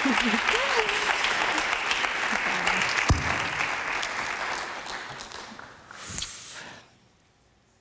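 A studio audience applauds loudly, then fades.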